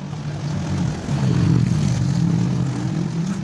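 A motorbike engine rumbles as it approaches along the street.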